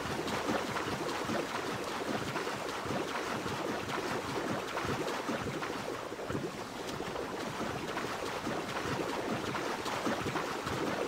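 A swimmer splashes through choppy water.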